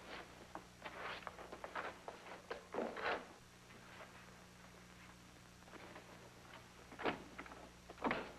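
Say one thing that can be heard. A woman speaks excitedly and exclaims in short bursts.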